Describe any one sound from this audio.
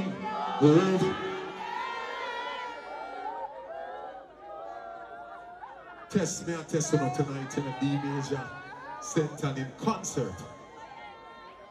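A man sings and raps loudly into a microphone over a loudspeaker.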